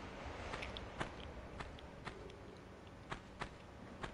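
Footsteps pad lightly on a stone floor.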